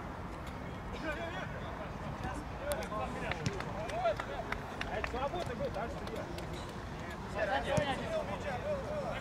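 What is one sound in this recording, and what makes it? Young men shout to each other across an outdoor pitch.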